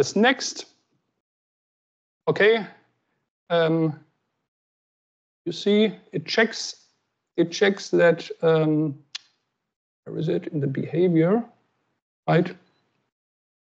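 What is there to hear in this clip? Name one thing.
A woman speaks calmly over an online call, in short phrases.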